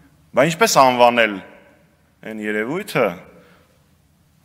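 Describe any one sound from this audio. A man speaks firmly into a microphone in a large echoing hall.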